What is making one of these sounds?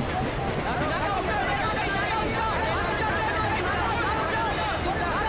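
A crowd of men shouts loudly.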